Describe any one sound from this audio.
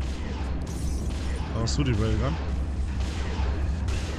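Energy weapons fire in quick bursts.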